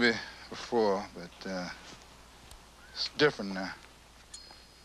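A man speaks in a low, calm voice nearby.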